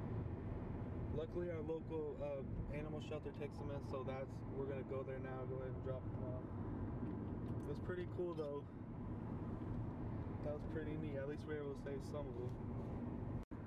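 A young man talks casually and close up.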